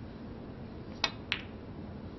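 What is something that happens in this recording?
A snooker cue taps the cue ball.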